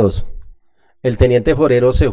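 A middle-aged man speaks into a microphone.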